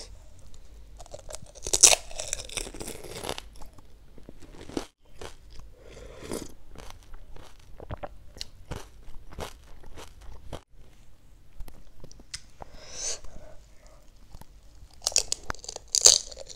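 A crisp hollow shell cracks and crunches loudly in a woman's mouth, close by.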